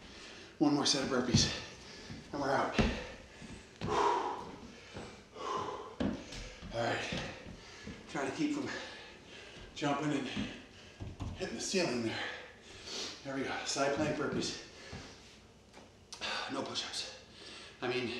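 A middle-aged man talks calmly nearby, in a room with some echo.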